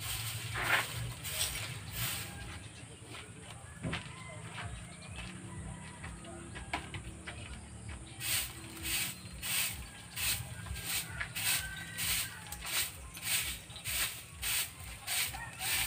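A broom sweeps dirt ground in quick, rhythmic strokes.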